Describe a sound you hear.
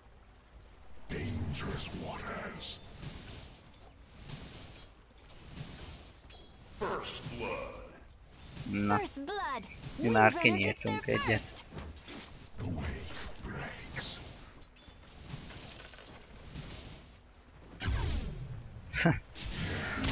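Game characters clash in battle with bursts of magical whooshes and hits.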